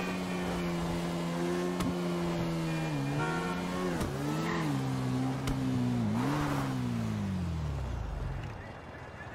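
A motorcycle engine roars and revs, then slows to a stop.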